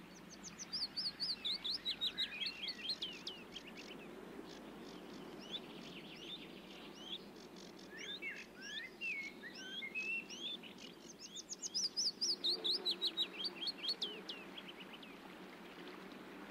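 A small songbird sings a rapid, trilling song.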